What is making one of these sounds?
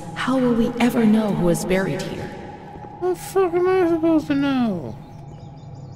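A woman talks animatedly into a microphone, close up.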